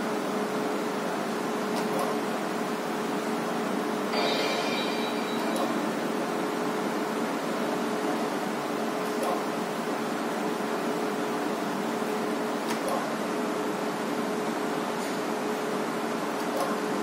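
A slot machine plays a steady electronic hum of tones.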